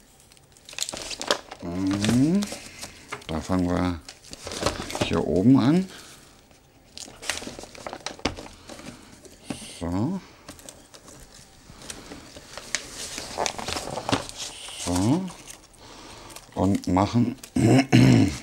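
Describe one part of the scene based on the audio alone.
Wrapping paper crinkles and rustles.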